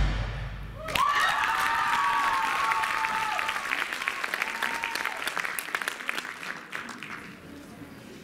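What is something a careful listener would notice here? Feet tap and shuffle on a stage floor.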